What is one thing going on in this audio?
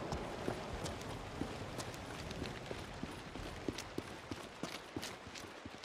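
Footsteps scuff quickly on pavement.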